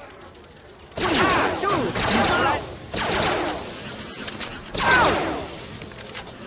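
Guns fire in short bursts.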